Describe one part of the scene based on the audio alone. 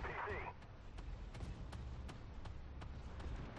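Rapid gunfire clatters against metal.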